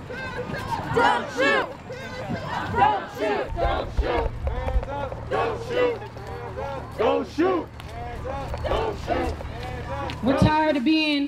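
A crowd of marchers chants loudly outdoors.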